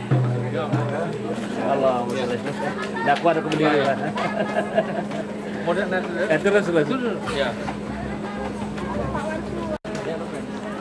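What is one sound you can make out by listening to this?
Adult men chat and laugh cheerfully close by.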